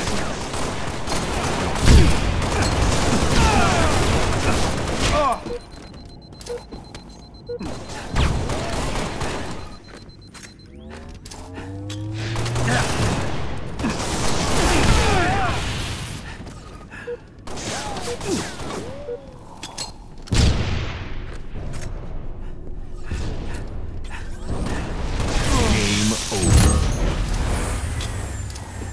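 Gunfire and blasts ring out in bursts.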